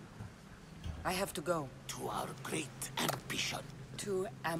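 A man speaks slowly in a low, solemn voice.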